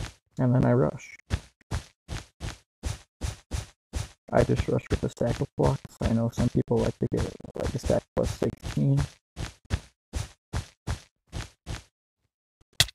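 Wool blocks are placed one after another in a video game.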